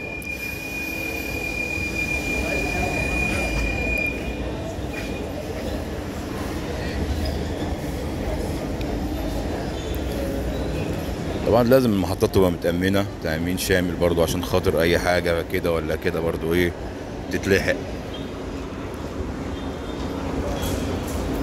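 A train rumbles past, rolling along the rails close by.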